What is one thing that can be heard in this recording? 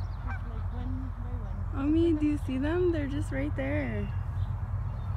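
Geese honk nearby.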